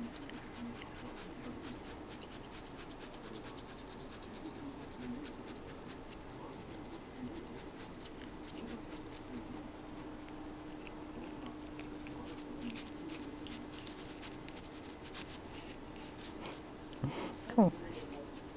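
A toothbrush scrubs softly against a cat's teeth.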